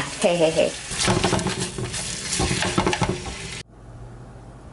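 Meat sizzles and crackles loudly in a hot pan.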